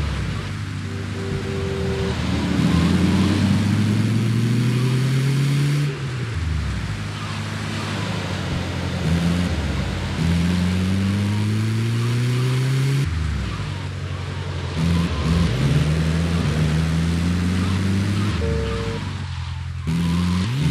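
An engine revs up and down as a vehicle speeds along.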